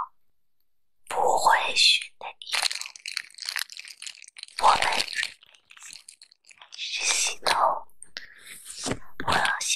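Plastic wrap crinkles and crackles under fingers.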